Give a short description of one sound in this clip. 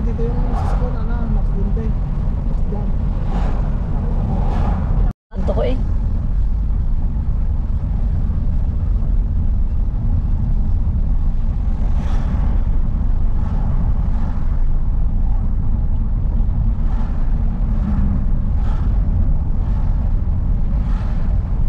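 Tyres rumble low on the road.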